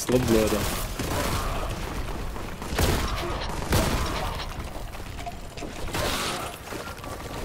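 A heavy gun fires loud blasts.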